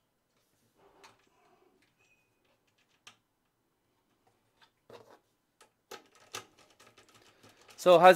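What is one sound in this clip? Small metal parts click and tap against each other.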